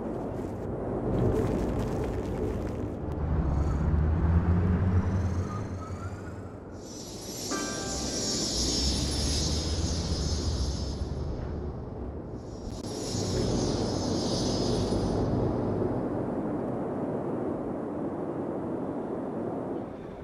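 Traffic hums steadily along a busy road.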